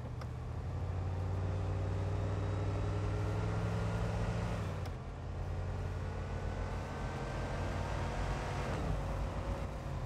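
A truck engine hums steadily, dropping in pitch as the gears shift.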